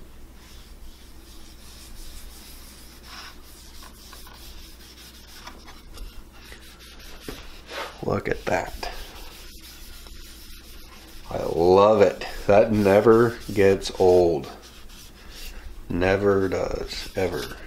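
A cloth rubs over a wooden board.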